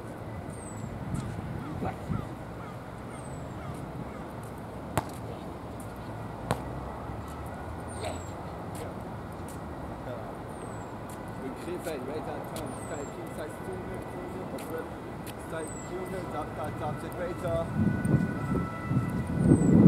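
A basketball bounces on a hard court outdoors.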